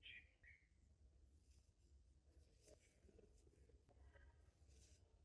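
Yarn rustles softly as a crochet hook pulls it through stitches.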